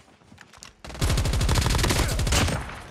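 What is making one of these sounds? A sniper rifle fires a sharp shot.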